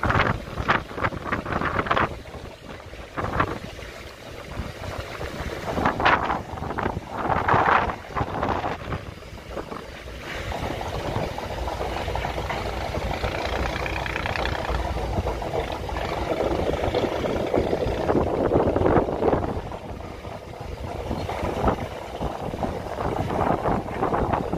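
Choppy water laps against a boat's hull.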